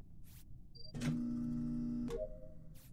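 A pitched electronic tone plays briefly.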